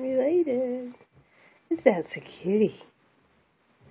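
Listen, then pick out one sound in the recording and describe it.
A kitten meows loudly a few times close by.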